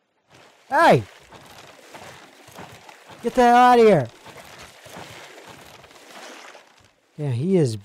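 Water splashes and laps against a floating raft.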